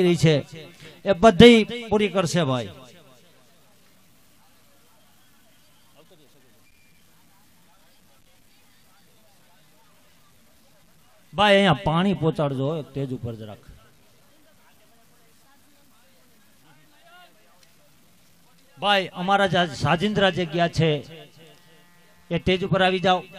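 A middle-aged man sings into a microphone in short phrases.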